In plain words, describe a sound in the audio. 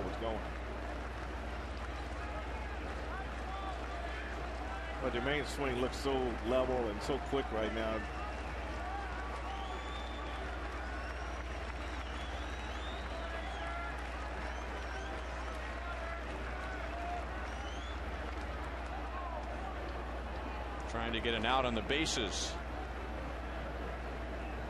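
A large crowd murmurs in an open stadium.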